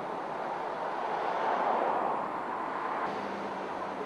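A car drives past close by with a rushing of tyres.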